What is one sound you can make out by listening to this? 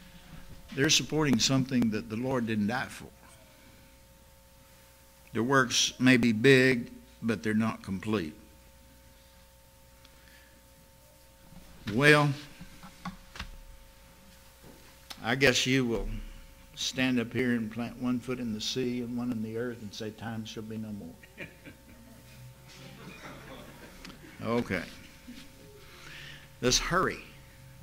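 An elderly man speaks calmly and deliberately into a microphone, with pauses between phrases.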